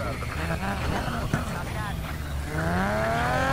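A car engine rumbles low at idle.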